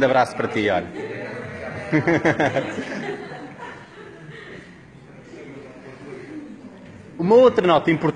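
An audience murmurs in a large room.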